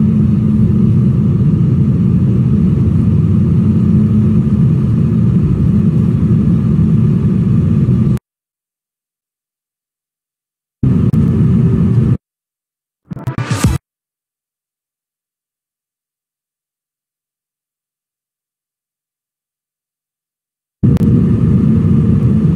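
A jet engine roars steadily, with sudden silent gaps.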